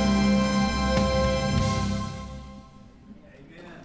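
A choir sings with music in a large echoing hall, then the song ends.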